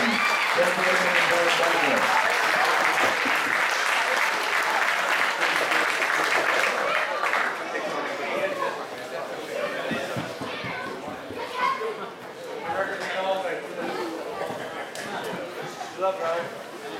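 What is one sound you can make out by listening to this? A crowd of men and women chatters in a large echoing room.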